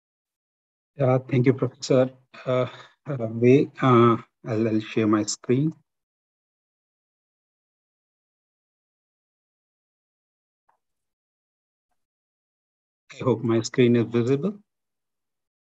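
A second middle-aged man speaks calmly over an online call.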